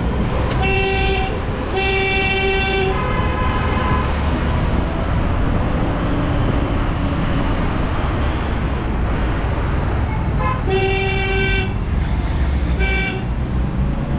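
Vehicle horns honk several times nearby.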